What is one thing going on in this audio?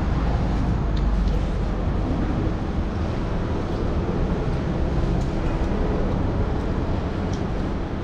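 People chew and smack their lips close by.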